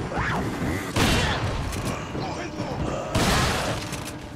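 A shotgun fires loud, booming blasts.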